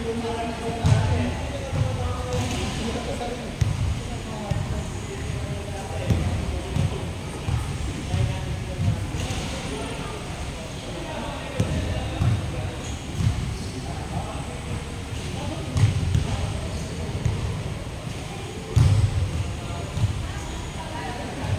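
Young people chatter and call out across the hall.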